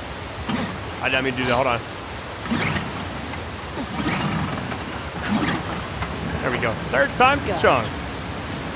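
A man mutters in frustration, close by.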